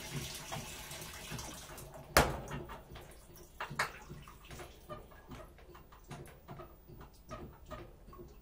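A front-loading washing machine runs with soft thumps and knocks.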